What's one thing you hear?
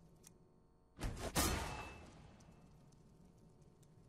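A magical whoosh swells and rings out.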